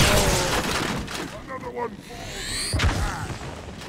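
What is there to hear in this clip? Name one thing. A creature crashes to the ground with a crackling electric burst.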